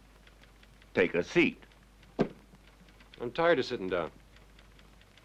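A young man speaks briefly and quietly.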